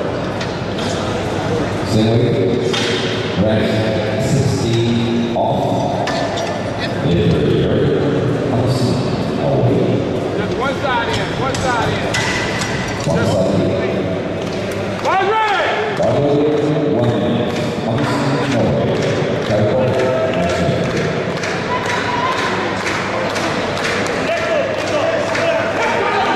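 Men talk and call out nearby in a large echoing hall.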